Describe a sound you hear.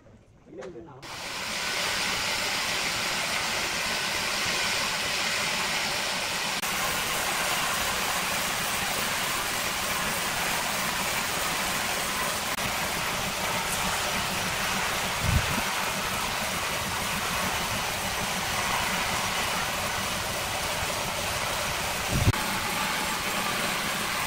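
A band saw runs steadily, cutting through a large log with a loud rushing noise.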